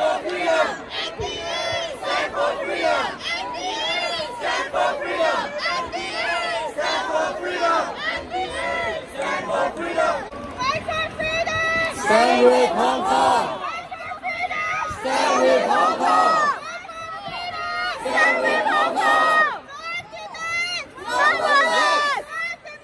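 A crowd of men and women chants slogans loudly in unison in a large echoing arena.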